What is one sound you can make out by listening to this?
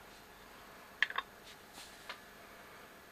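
A small plastic device clicks and knocks against a wooden table as it is set down.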